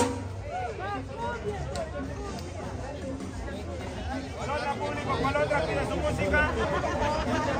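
A lively crowd of men and women talks and cheers outdoors.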